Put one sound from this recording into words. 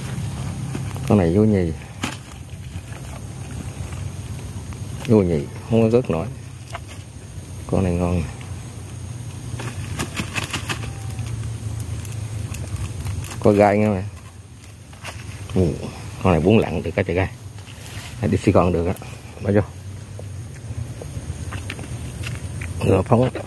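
A man talks nearby in short bursts.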